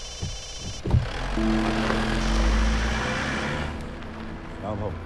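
A car engine starts and rumbles nearby.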